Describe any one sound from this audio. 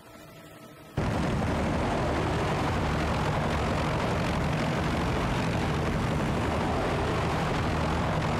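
A helicopter's rotor drones steadily and loudly.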